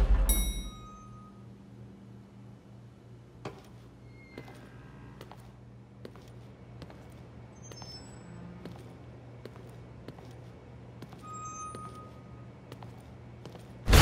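Footsteps walk slowly on a hard floor.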